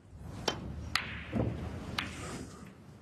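Snooker balls knock together with crisp clicks.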